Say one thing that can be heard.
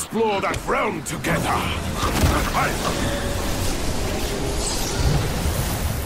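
A large beast charges and crashes heavily into the ground.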